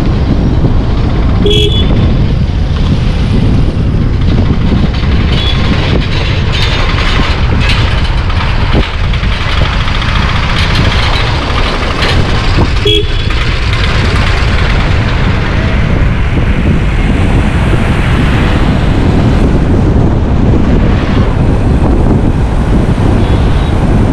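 Tyres roll on a rough road with a loud steady rumble.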